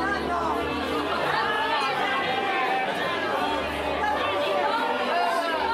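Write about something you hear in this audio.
A crowd of men and women chatters loudly in an echoing hall.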